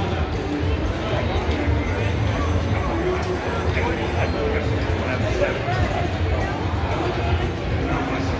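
Slot machines chime and jingle nearby.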